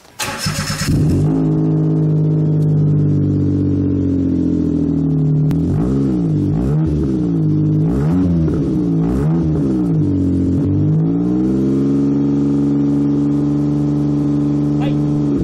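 A car engine idles with a loud, deep rumble through its exhaust.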